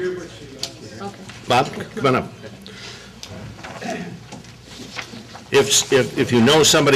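A middle-aged man speaks with animation into a microphone in a large room.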